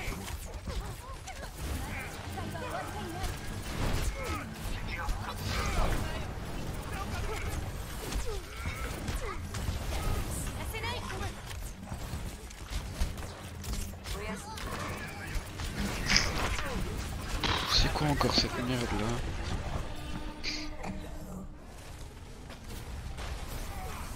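Video game weapons fire and clash in rapid bursts.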